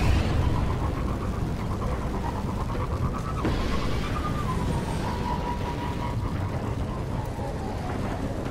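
A vehicle engine hums steadily as it speeds along.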